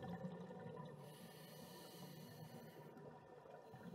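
Air bubbles from a diver's regulator gurgle and rush underwater.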